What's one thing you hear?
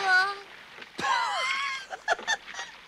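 A dog snickers and laughs.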